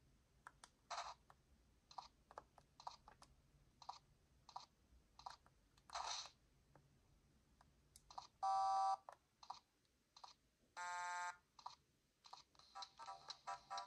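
Plastic buttons click softly under thumbs.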